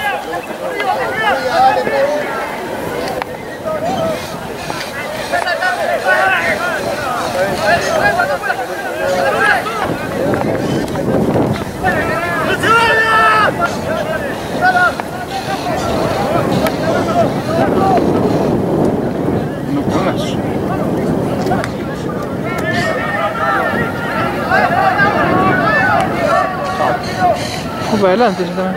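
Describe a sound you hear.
A crowd of spectators murmurs and cheers outdoors.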